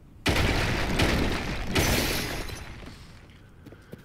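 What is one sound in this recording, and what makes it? A rock shatters and crumbles apart.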